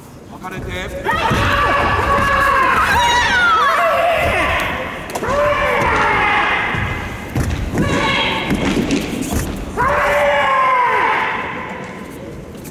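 A man calls out loudly as a referee in a large echoing hall.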